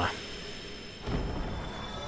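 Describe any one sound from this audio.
A metal weapon strikes with a sharp clang.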